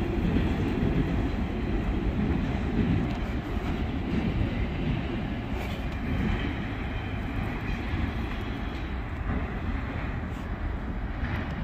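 A train engine rumbles steadily in the distance.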